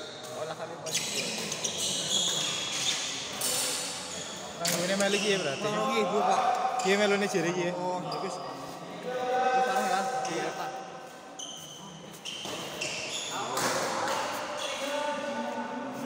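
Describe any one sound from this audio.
Shuttlecocks are struck with rackets in a large echoing hall.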